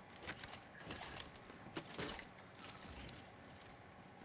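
Metal clicks and clatters.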